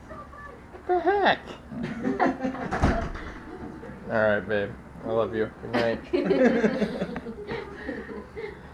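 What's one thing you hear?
A woman laughs and exclaims with excitement.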